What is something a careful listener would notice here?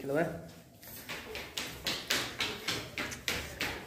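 Footsteps thud quickly down stairs.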